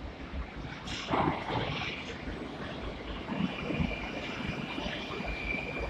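A subway train rumbles into the station.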